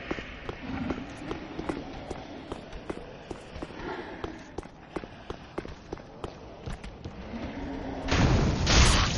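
Armoured footsteps clank on stone and wood.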